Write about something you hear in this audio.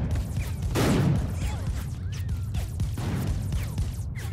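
A humming energy blade whooshes through the air.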